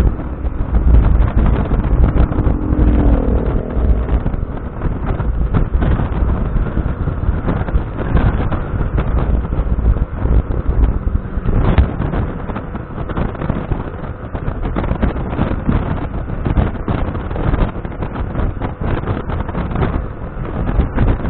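Wind buffets loudly past a moving motorcycle.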